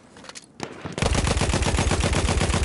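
A heavy machine gun fires in a fast, loud rattle.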